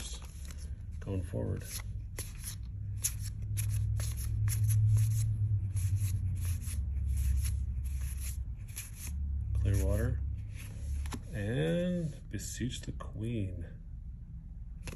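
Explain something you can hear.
Playing cards flick and snap as they are shuffled through by hand.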